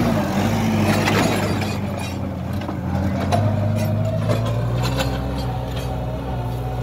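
A disc plough scrapes and crunches through dry soil.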